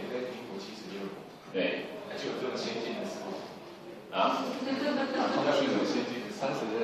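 A middle-aged man speaks calmly into a microphone, heard through a loudspeaker in an echoing room.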